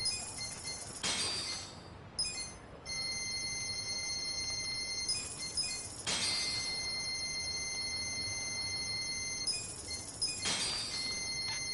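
Soft electronic menu chimes sound as selections are made.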